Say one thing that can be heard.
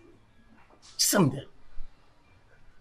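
A man speaks with emotion close by.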